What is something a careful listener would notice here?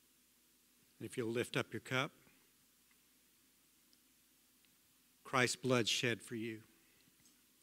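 A man speaks briefly through a microphone in a large hall.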